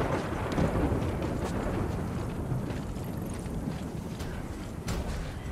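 Boots crunch through deep snow at a run.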